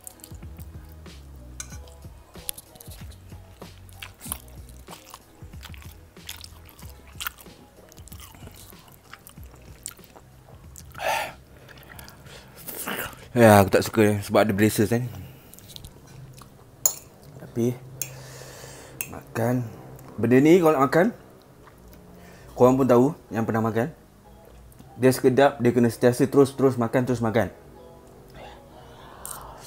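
A young man chews and slurps noodles close to a microphone.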